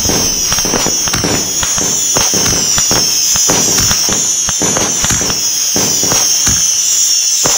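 Fireworks bang and crackle in quick succession.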